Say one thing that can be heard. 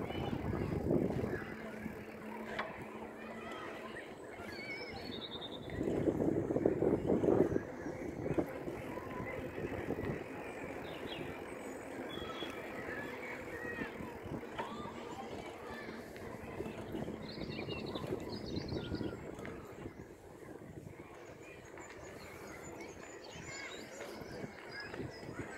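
Bicycle tyres hum steadily over a paved path.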